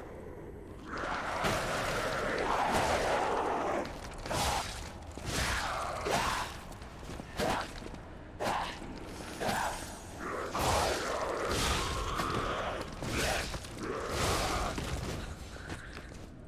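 Metal weapons slash and strike hard in a fierce fight.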